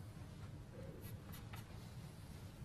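A cue tip is chalked with a few short scrapes.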